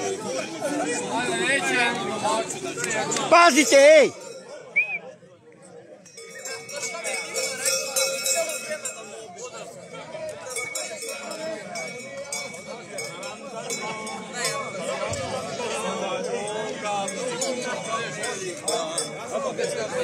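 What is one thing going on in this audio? A crowd of men and women chatter and laugh outdoors.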